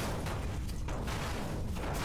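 An energy blade swings through the air with a humming whoosh.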